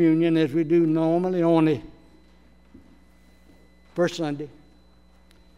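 An elderly man speaks slowly and solemnly through a microphone in a large echoing room.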